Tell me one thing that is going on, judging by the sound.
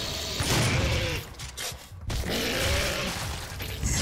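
Flesh tears with a wet, squelching crunch.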